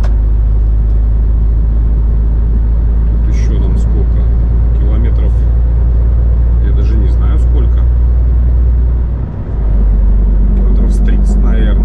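A vehicle's engine hums steadily.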